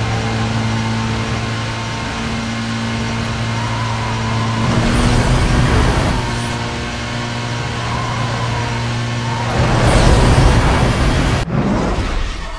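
A racing car engine roars at high revs, steady and loud.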